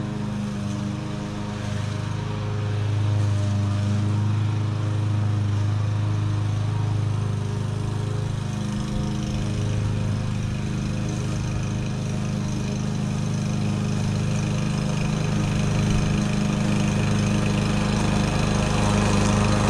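A lawn mower engine drones steadily in the distance, growing louder as it approaches.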